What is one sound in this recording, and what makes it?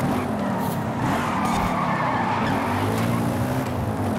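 Tyres screech through a sharp bend.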